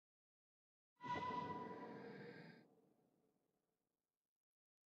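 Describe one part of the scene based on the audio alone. A notification chime rings out and fades.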